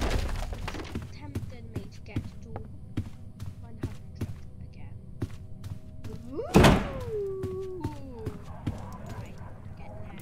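Footsteps tread steadily across a wooden floor.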